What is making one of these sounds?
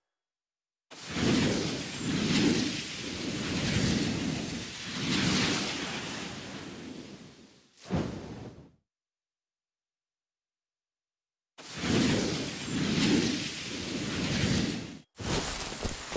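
A rocket roars with a rushing whoosh.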